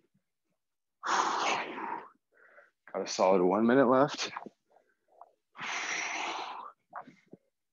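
A young man breathes out hard and grunts with effort close by.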